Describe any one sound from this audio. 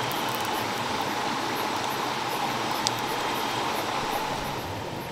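A small campfire crackles softly nearby.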